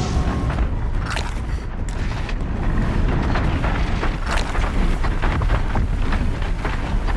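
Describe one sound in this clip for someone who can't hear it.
A large mechanical creature clanks and thuds.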